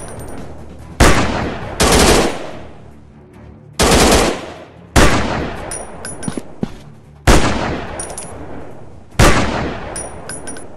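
Loud rifle shots crack one at a time, each followed by a long fading echo.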